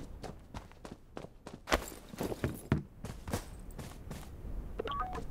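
Footsteps crunch through dry grass and dirt.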